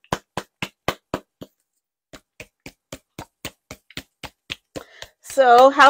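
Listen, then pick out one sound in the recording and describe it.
A ball rattles inside a can being shaken.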